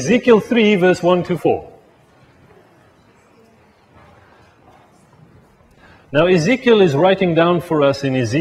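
A man speaks calmly into a microphone, pausing briefly.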